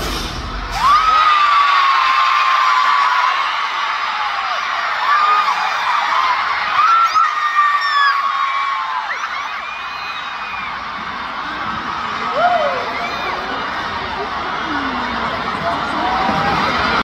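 A large crowd screams and cheers in a huge echoing arena.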